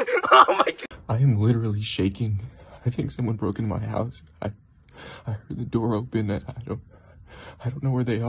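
A young man speaks quietly close by.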